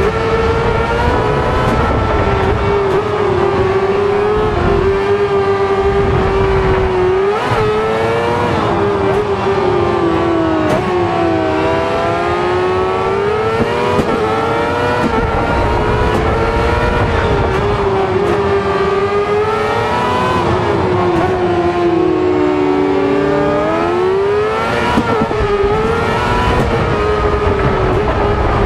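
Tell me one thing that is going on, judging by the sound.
A racing car engine revs and roars, rising and falling with gear changes.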